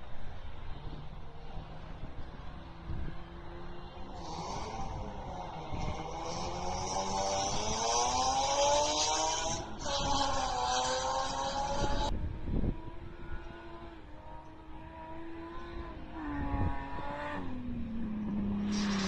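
A car engine revs and whines in the distance.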